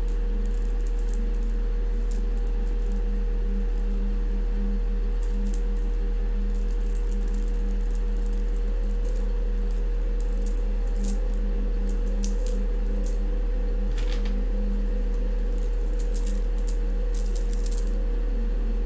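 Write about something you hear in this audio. A metal chain jingles and clinks softly in a man's hands.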